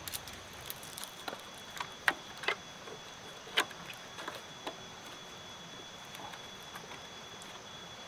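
Rope creaks and rustles as it is pulled tight around bamboo.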